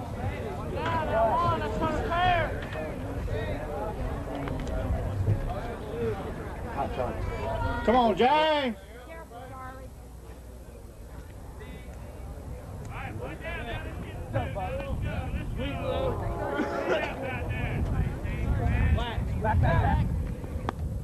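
Men shout and call out across an outdoor ball field.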